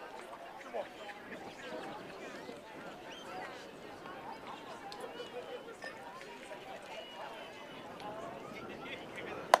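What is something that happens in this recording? Young players and onlookers chatter and call out across an open field.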